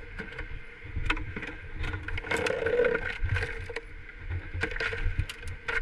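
Broken plastic car parts scrape and clatter as they are handled.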